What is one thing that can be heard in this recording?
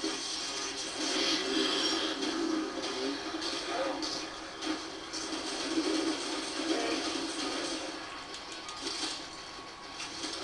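Rapid gunfire rattles through a loudspeaker.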